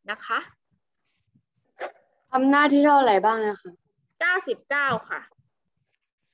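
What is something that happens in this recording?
A young woman speaks in a teaching tone, close to a microphone, as in an online call.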